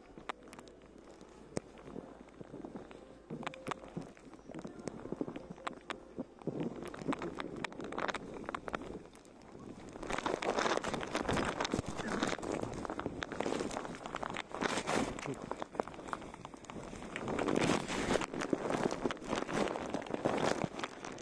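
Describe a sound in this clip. A snowboard hisses and scrapes over snow.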